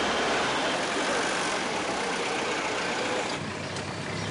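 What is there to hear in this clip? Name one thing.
Traffic drives past on a busy street.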